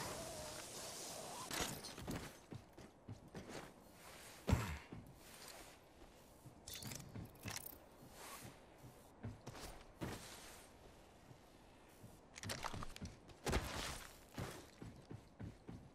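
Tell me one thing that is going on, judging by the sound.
Footsteps patter quickly on hard ground as a game character runs.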